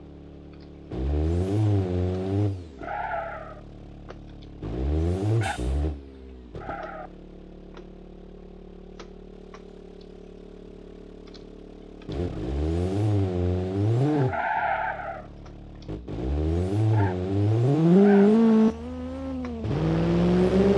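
A car engine revs hard in repeated bursts.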